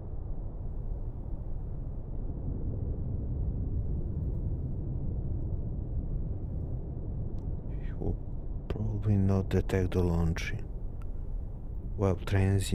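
A submarine's propeller churns with a low, steady underwater rumble.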